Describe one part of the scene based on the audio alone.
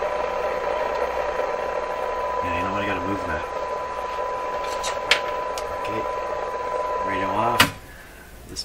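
An old radio set gives off a steady humming tone.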